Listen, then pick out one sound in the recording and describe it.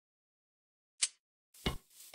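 A grenade pin clicks as it is pulled.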